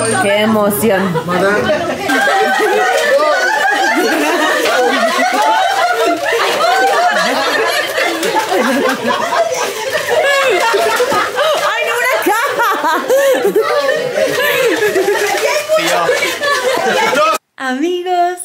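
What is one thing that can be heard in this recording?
A group of people laugh loudly.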